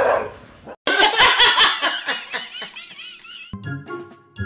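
A young man laughs loudly and wildly.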